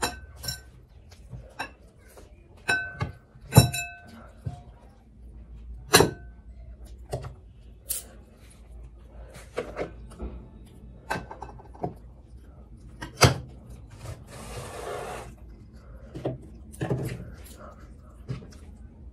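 Food crunches and squelches as a young woman eats close by.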